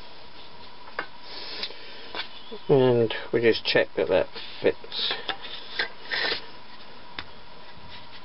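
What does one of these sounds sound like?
A wooden tool handle knocks lightly against metal.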